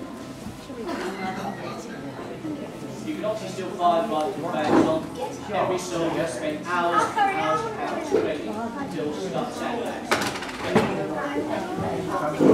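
A man speaks loudly and with animation to an audience in a large echoing hall.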